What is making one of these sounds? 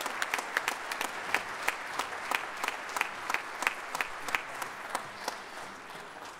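A drum taps out a quick steady beat.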